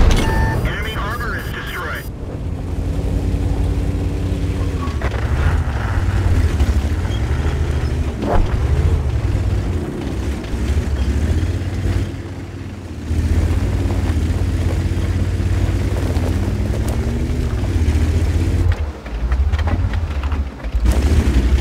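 A tank engine rumbles and whines steadily.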